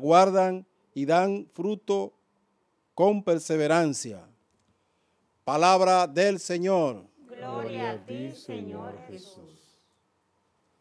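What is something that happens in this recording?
A man speaks slowly and clearly into a microphone in an echoing room.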